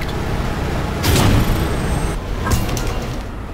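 Static hisses and crackles loudly.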